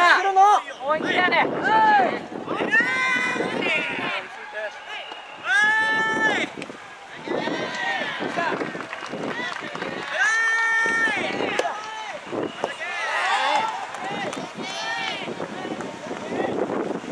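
A crowd of young spectators shouts and cheers loudly outdoors.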